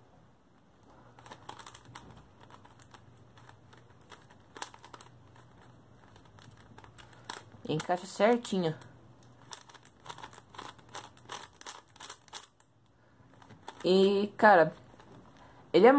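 Plastic puzzle cube pieces click softly as they are twisted.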